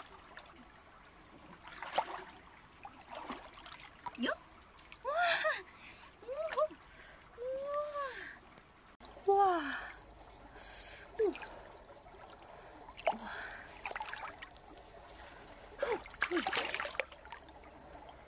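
Water splashes and trickles as hands scoop through a shallow stream.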